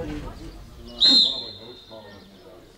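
A referee's whistle blows once, sharply.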